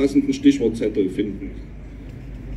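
A man speaks through a loudspeaker outdoors, echoing across an open square.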